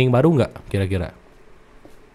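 A young man talks through a close microphone.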